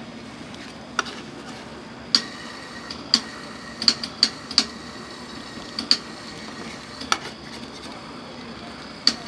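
A metal spatula scrapes across a frozen sheet on a metal pan.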